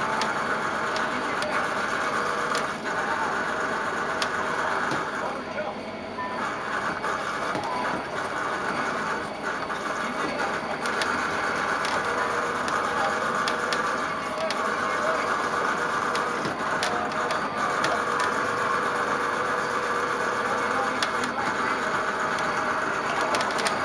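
A racing arcade game plays loud engine roars and music.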